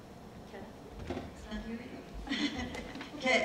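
An older woman speaks through a microphone in a large room.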